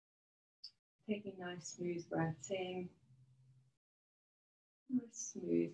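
A woman speaks calmly into a microphone, as on an online call.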